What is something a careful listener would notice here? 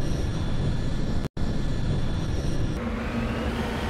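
A spacecraft roars and rushes past.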